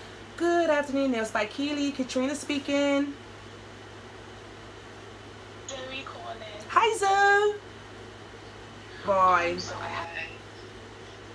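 A woman speaks into a phone close by, in short bursts with pauses.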